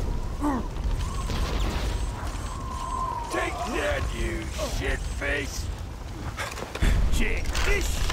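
A weapon blasts with a rushing, hissing roar.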